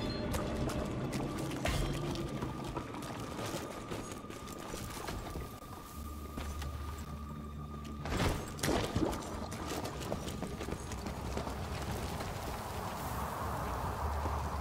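Footsteps tread on rocky ground.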